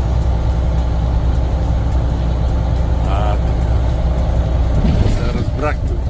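A car hums steadily as it drives along a highway, with tyres rumbling on the road.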